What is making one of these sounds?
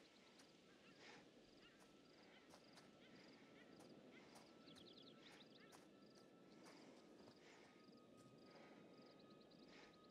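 Footsteps crunch through dry grass and leaves.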